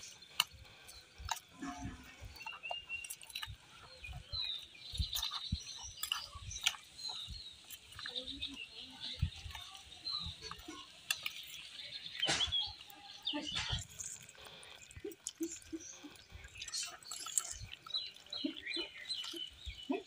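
Wet food squelches as it is stirred.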